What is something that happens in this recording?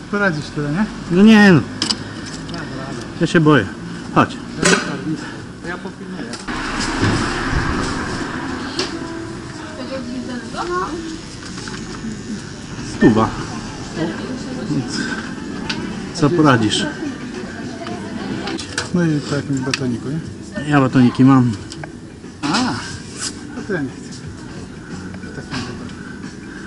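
Adult men talk casually nearby.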